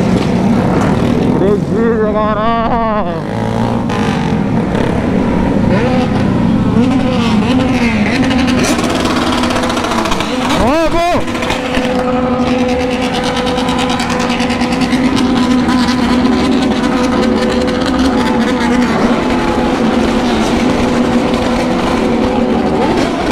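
A motorcycle engine hums steadily up close as it rides.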